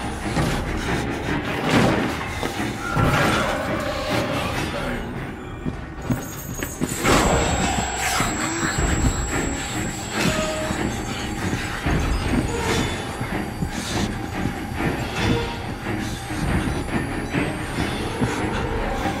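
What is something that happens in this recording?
Footsteps walk quickly across a wooden floor.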